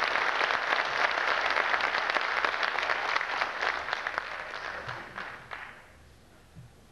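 An audience applauds loudly in a large hall, then the clapping dies away.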